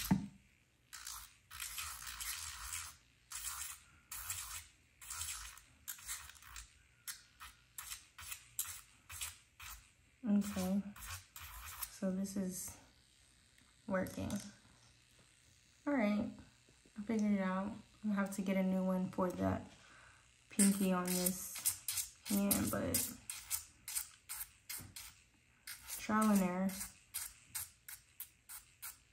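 A small metal tool scrapes a fingernail in short, quick strokes.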